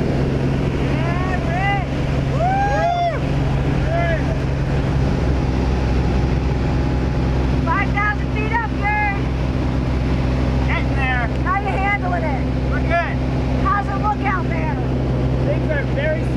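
A young man talks and laughs loudly over the engine noise.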